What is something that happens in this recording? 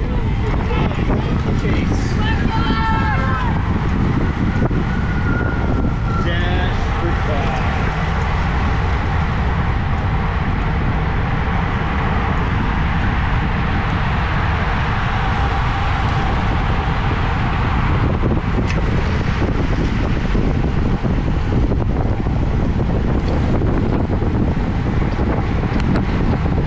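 Wind rushes loudly past, as if heard while riding fast outdoors.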